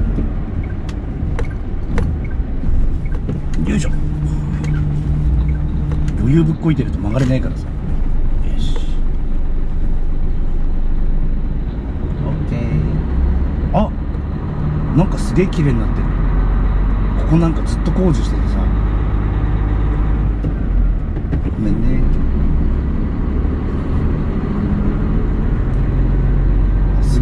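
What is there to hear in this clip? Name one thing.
A vehicle engine hums low and steady from inside the cab.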